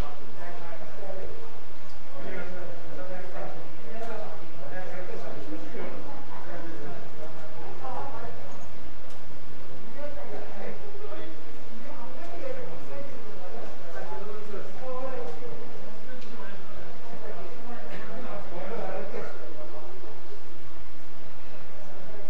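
Men and women murmur softly nearby.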